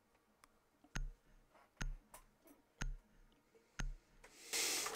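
A game's countdown timer beeps once a second.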